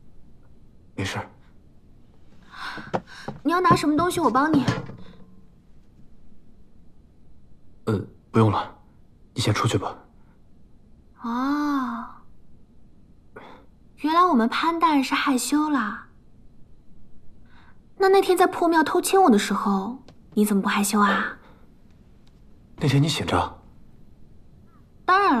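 A young man answers in a low, calm voice.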